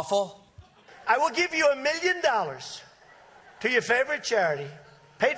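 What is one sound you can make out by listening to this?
A man speaks loudly into a microphone to a crowd.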